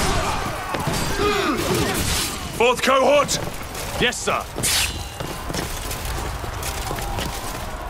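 Swords clash in a battle nearby.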